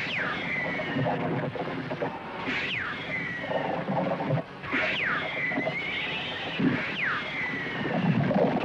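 Horses' hooves pound on the ground.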